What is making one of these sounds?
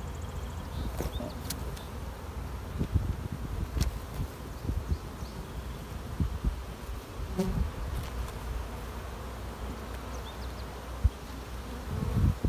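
A hive tool scrapes and knocks against wooden frames.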